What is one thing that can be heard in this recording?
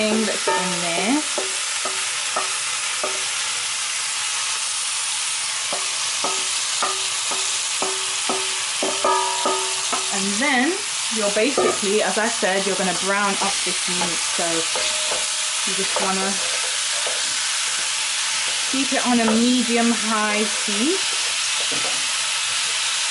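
Food sizzles steadily in a pot.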